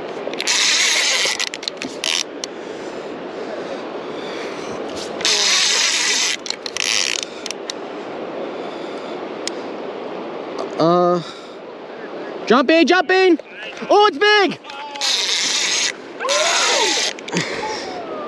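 A fishing reel's drag buzzes in short bursts as line pulls out.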